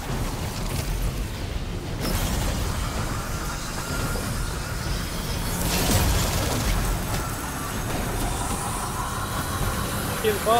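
Fiery magic blasts crackle and roar.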